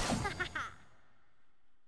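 A magical blast crackles and quickly fades.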